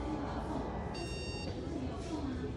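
A machine beeps briefly.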